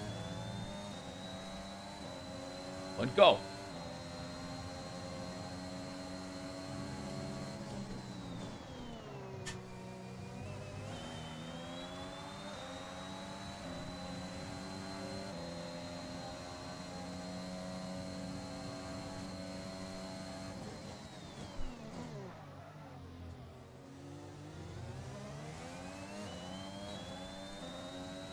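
A racing car engine whines at high revs, dropping sharply when braking and climbing again through the gears.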